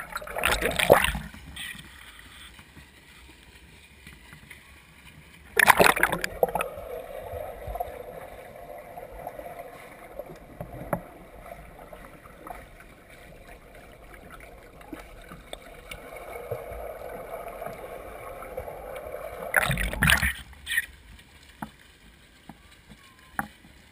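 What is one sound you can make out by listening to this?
A swimmer splashes through the water of a pool in a large echoing hall.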